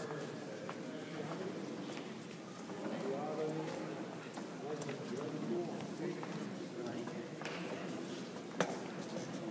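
A crowd of people murmurs and talks quietly in a large echoing hall.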